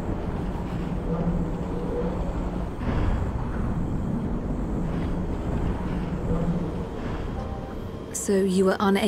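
A large airship's engines rumble low and steadily.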